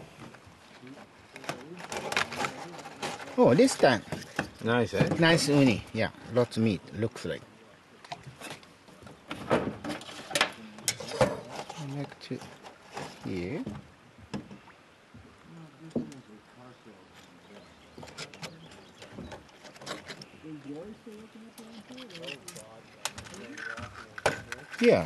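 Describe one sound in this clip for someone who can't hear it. Sea urchin shells crack and crunch as they are pried open by hand.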